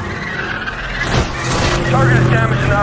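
A car scrapes along a metal guardrail.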